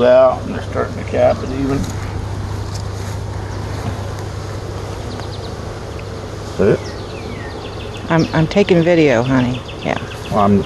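Honeybees hum as they swarm over a lifted hive frame.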